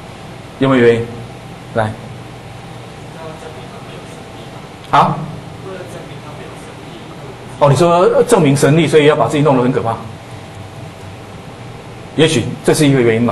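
A man lectures into a microphone in bursts, with pauses between phrases.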